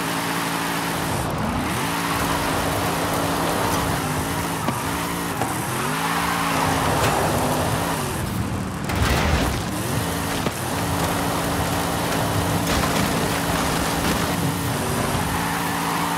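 Tyres skid and crunch over gravel.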